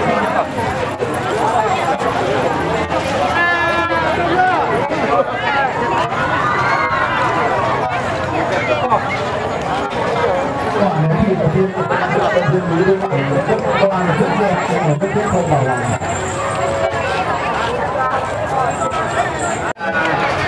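A large outdoor crowd chatters and murmurs all around.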